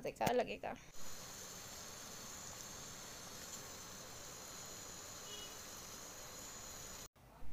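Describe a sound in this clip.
Liquid boils and bubbles steadily in a pot.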